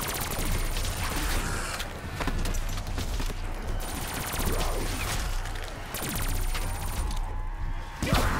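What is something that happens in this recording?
Gunfire blasts rapidly and loudly.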